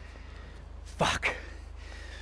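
A man curses loudly.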